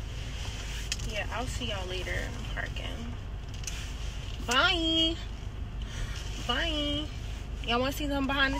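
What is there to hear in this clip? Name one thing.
A young woman sings close by in short phrases.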